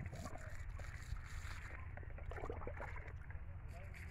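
Water pours from a mug onto dry soil.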